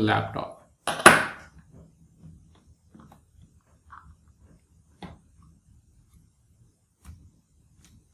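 A metal drive caddy clicks and knocks into a laptop's plastic case.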